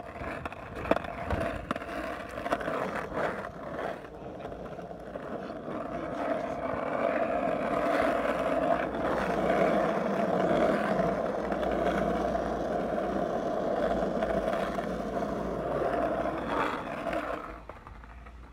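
Skateboard wheels rumble and clatter over rough pavement.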